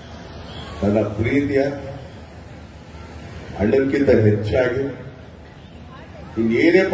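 A man speaks forcefully into a microphone through loudspeakers.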